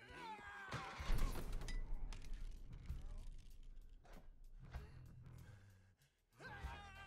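A grenade explodes with a deep rumbling boom.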